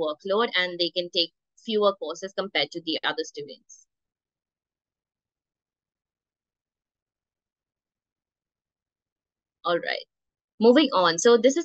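A young woman speaks calmly through an online call, with pauses.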